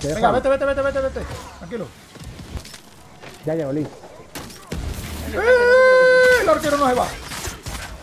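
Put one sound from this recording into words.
A young man shouts and yells with excitement into a close microphone.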